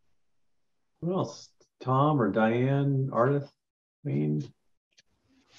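A middle-aged man talks calmly over an online call.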